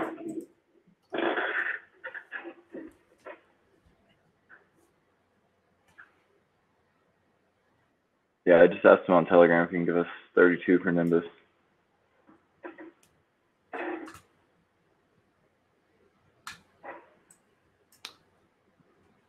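A man speaks over an online call, in short bursts with pauses.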